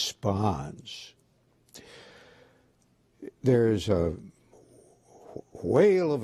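An elderly man speaks slowly and earnestly into a microphone.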